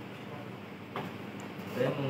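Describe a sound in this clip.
A metal kettle is set down on a counter with a knock.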